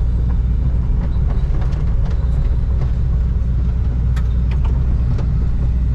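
Clods of earth and stones knock against an excavator bucket.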